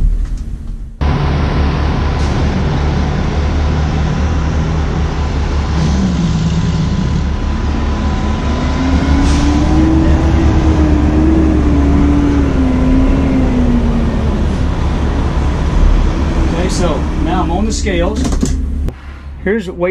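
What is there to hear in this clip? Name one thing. A large motorhome engine idles with a deep, steady rumble.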